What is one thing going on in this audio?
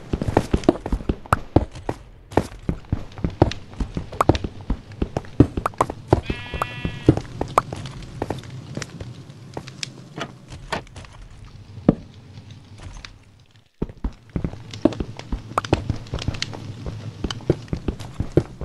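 Pickaxe blows chip rapidly at stone blocks.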